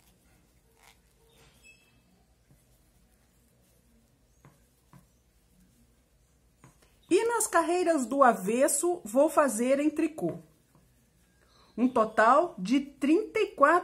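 A crochet hook taps and rustles softly through yarn.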